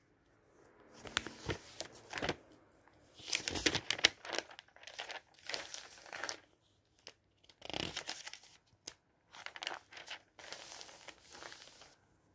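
A hand rubs and smooths down paper pages.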